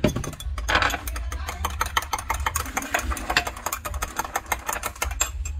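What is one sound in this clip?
A spoon stirs and clinks rapidly against a glass mug.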